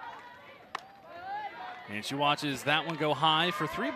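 A softball smacks into a catcher's mitt.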